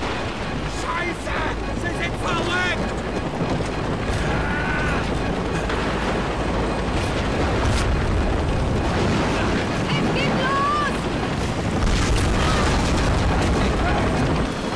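A young woman shouts urgently.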